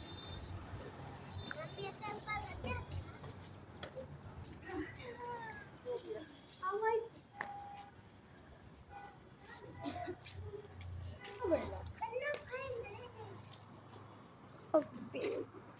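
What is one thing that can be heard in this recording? Young girls talk and call out to each other with animation outdoors.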